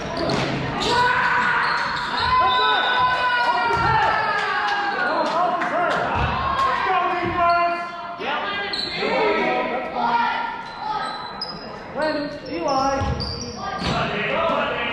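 A man near by shouts loudly.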